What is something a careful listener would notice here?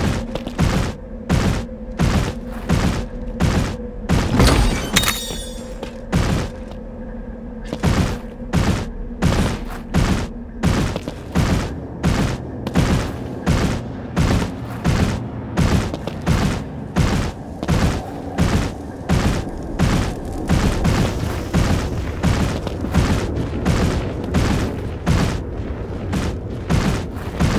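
Heavy footsteps of a large creature thud in a quick, steady rhythm.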